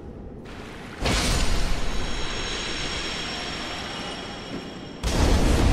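A loud fiery explosion roars and slowly fades.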